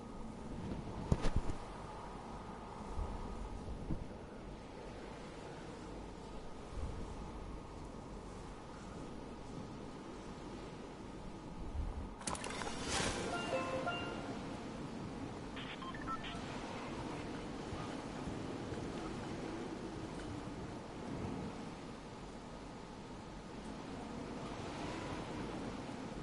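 Wind rushes steadily past while falling through the air.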